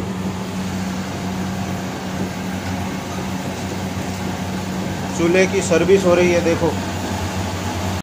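Gas burners roar steadily.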